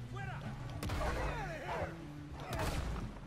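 A wolf yelps and whines.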